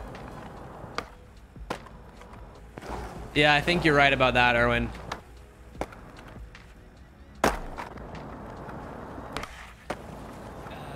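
A skateboard clacks sharply on landing.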